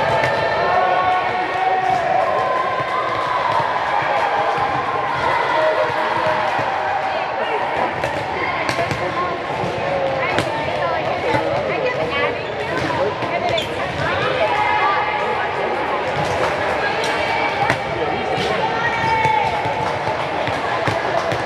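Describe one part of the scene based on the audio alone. Many voices of girls and adults chatter and call out, echoing through a large hall.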